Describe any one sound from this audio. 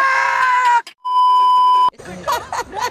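A steady high test tone beeps.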